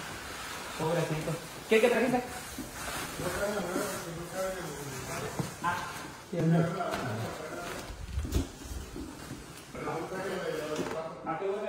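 A large plastic bag rustles as it is carried.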